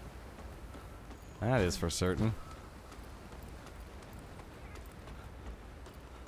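Footsteps crunch steadily on hard rocky ground.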